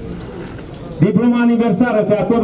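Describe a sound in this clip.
A man chants loudly through a loudspeaker.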